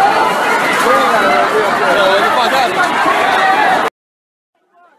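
A large crowd shouts and cheers loudly up close.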